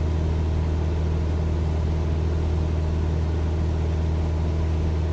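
A small plane's propeller engine drones steadily.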